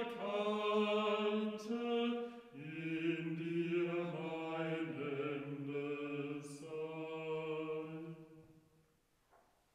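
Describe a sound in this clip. Men chant a sung liturgy in a large echoing hall.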